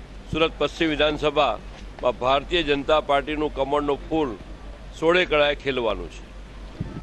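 A middle-aged man speaks into microphones up close.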